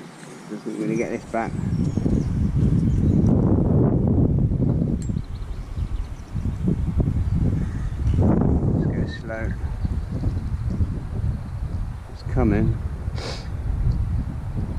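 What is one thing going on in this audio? Wind rumbles and buffets against the microphone outdoors.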